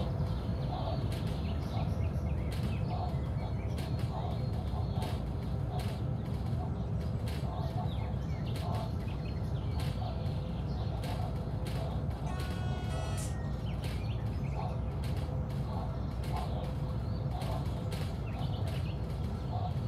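A train rumbles low as it runs along the track.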